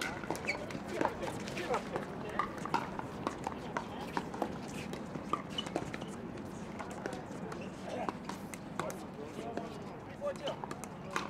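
Paddles pop sharply against plastic balls on nearby courts, over and over.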